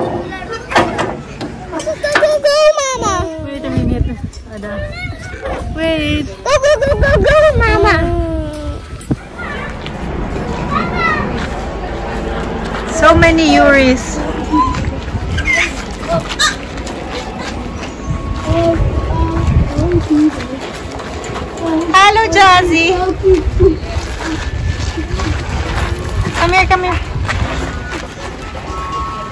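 A small child squeals and babbles close by.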